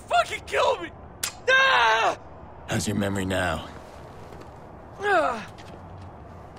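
A man groans and speaks in pain, close by.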